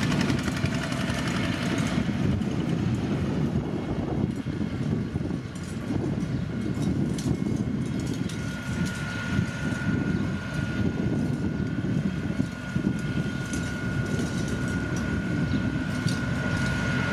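Heavy road rollers rumble and drone with deep diesel engines.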